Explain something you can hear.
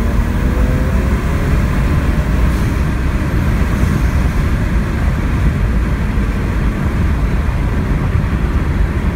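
A car engine roars loudly under hard acceleration.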